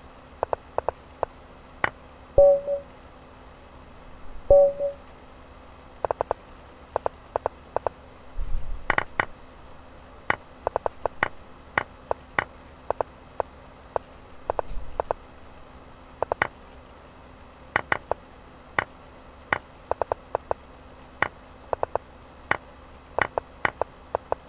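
Short wooden clicks of chess moves come in quick bursts.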